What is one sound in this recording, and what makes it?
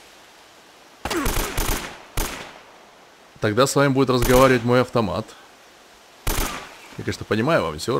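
A rifle fires several quick shots.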